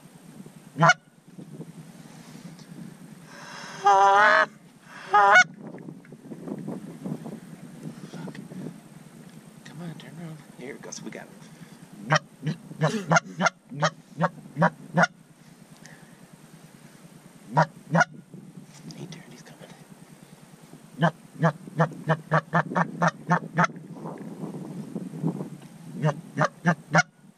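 Geese honk loudly nearby, in short repeated calls.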